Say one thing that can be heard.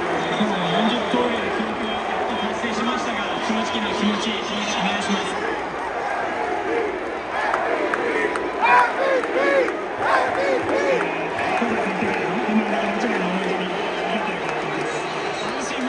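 A large stadium crowd murmurs and cheers in an open echoing space.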